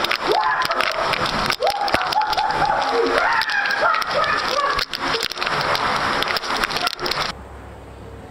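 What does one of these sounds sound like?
A young man shouts and laughs excitedly close by.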